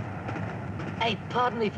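A young man speaks up loudly close by.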